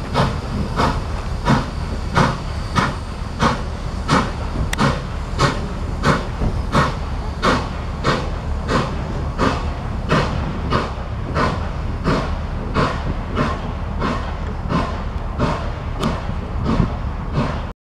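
A low rumble of a heavy train rolls on the rails.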